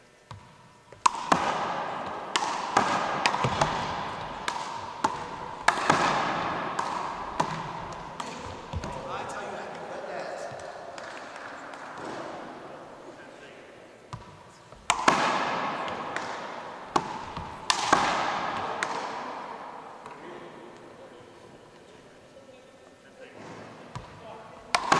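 Rubber balls thud and smack loudly in a large echoing hall.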